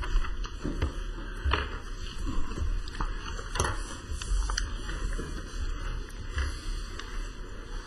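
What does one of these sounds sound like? A man speaks steadily into a microphone in an echoing hall.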